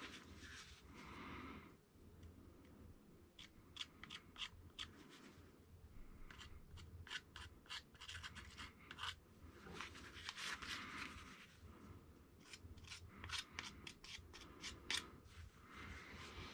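A screwdriver clicks and scrapes against a small metal part.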